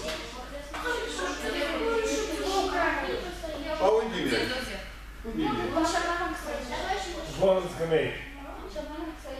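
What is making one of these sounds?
Young women talk and laugh in an echoing hall.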